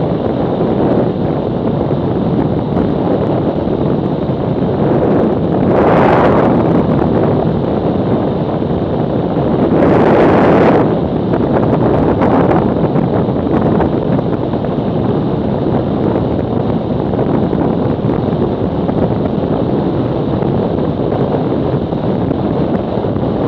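Wind roars steadily over a moving motorcycle, with loud gusts.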